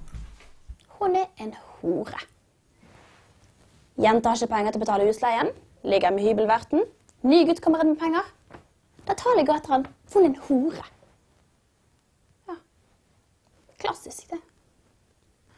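A young woman talks thoughtfully, close by.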